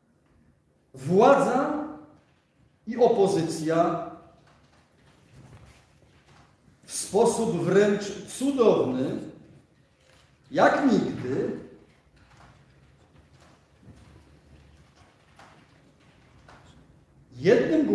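A middle-aged man speaks in short, loud bursts with pauses in a large echoing room.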